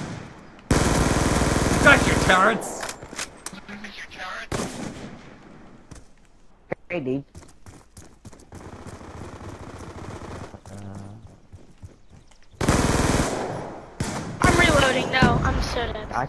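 Gunfire bursts in loud rapid volleys.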